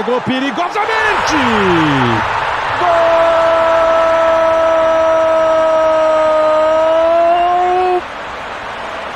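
A stadium crowd roars and cheers loudly after a goal.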